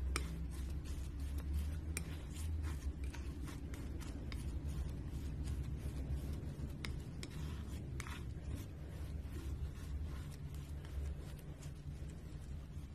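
A palette knife squelches and smacks through thick paint on paper.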